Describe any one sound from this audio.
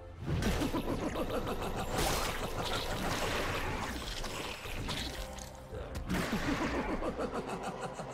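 Fantasy combat effects whoosh, zap and clash in quick succession.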